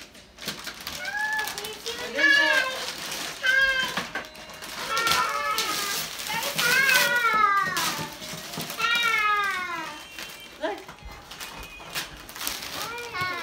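Young children squeal and chatter excitedly nearby.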